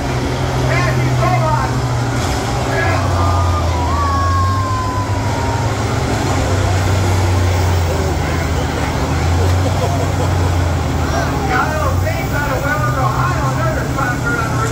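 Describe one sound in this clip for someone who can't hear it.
A tractor engine roars loudly and steadily under heavy load.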